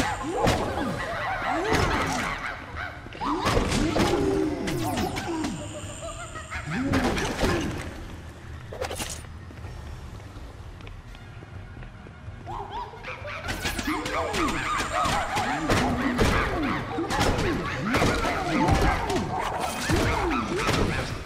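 Weapons clash and strike in a fast fight.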